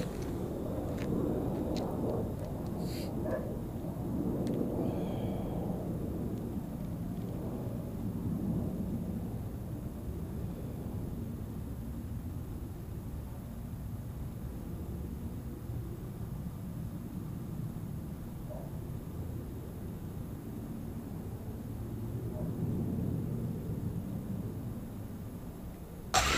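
Wind buffets the microphone outdoors with a low, uneven rumble.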